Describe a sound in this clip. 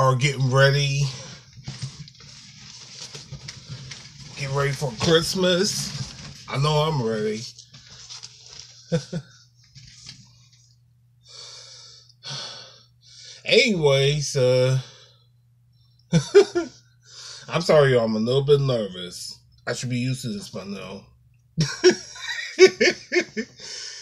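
A man talks with animation close to a phone microphone.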